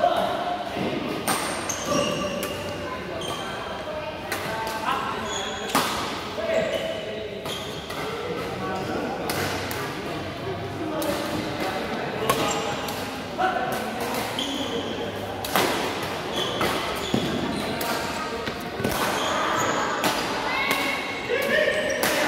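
Sports shoes squeak sharply on the court floor.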